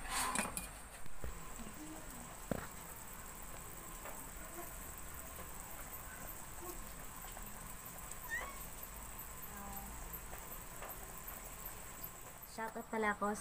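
Soup bubbles gently in a boiling pot.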